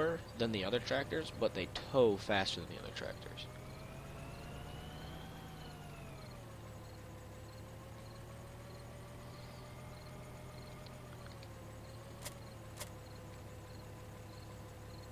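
A tractor engine drones, rising in pitch for a moment and then settling to a steady hum.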